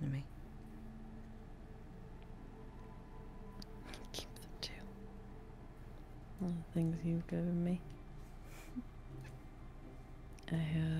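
A young woman talks into a microphone, calmly and in short bursts.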